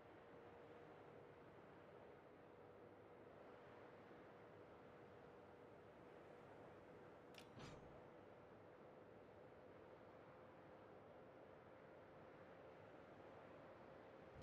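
Water rushes and splashes along a warship's hull as it cuts through open sea.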